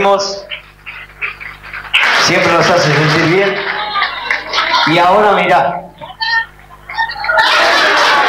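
A crowd of people claps and cheers.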